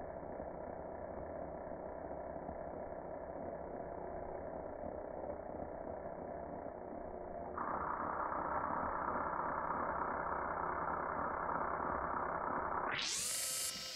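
An electric drill whirs steadily at high speed.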